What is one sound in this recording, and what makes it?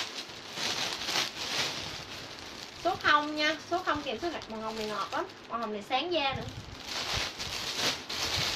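Fabric rustles as a garment is handled.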